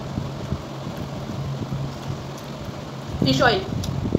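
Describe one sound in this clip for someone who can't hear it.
Fingers squish and mix rice with gravy.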